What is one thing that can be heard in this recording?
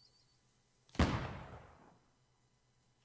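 A cannon fires with a loud boom that rumbles away.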